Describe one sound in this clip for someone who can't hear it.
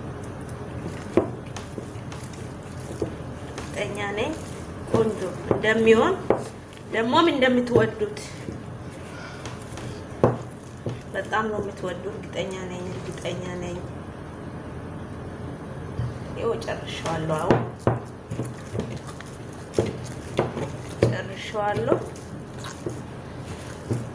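Hands squish and knead soft, wet dough in a bowl.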